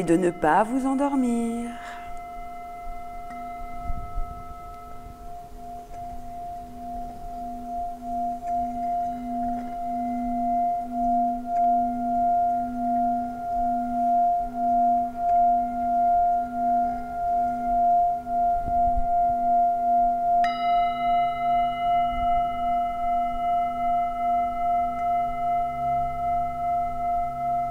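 A singing bowl is struck and rings out with a long, steady tone.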